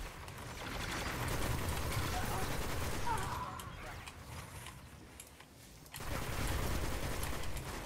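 Rapid energy gunfire zaps and crackles.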